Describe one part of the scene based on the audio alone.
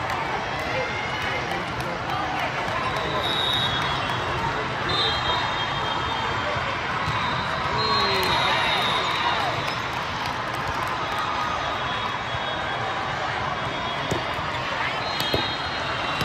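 A volleyball thumps off a player's arms.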